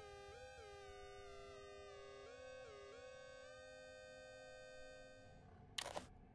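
Electronic tones hum and shift in pitch.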